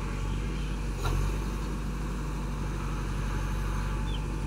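A loader bucket scrapes and digs into a pile of sand.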